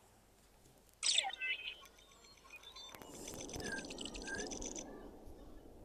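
Electronic beeps and bleeps chirp briefly.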